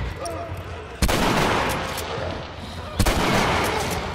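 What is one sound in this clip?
A gun fires loud, sharp shots that echo.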